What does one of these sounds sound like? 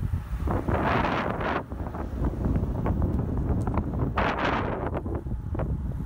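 A vehicle's tyres rumble low and steady on the road.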